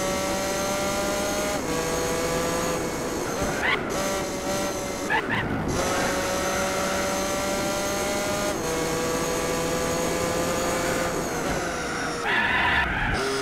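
A race car engine roars at high revs, dropping in pitch with each gear change.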